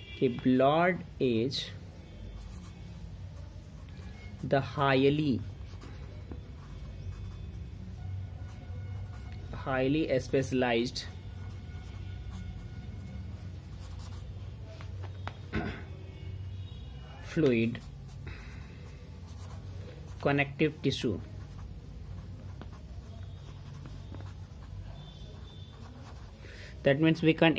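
A marker squeaks and scratches across paper.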